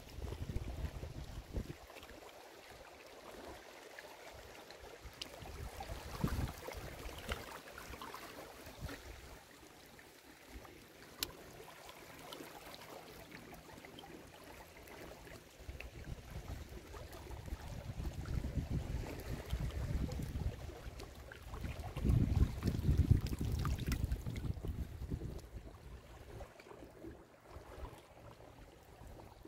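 Small waves lap and trickle gently around rocks in shallow water.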